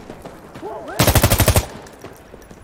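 An assault rifle fires a rapid burst.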